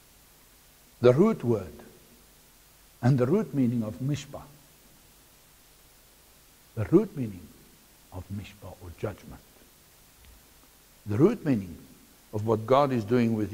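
A middle-aged man speaks calmly through a microphone, in bursts with pauses.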